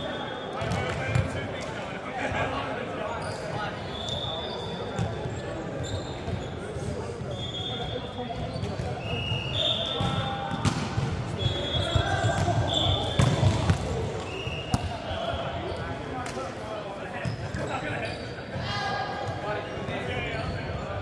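Young men talk and call out to each other in a large echoing hall.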